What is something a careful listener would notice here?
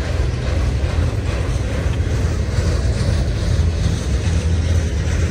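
A long freight train rumbles steadily past, wheels clattering on the rails.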